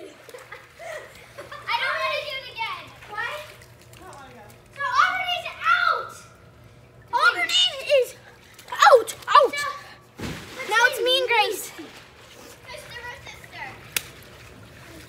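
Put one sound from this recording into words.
A young girl talks with animation close by.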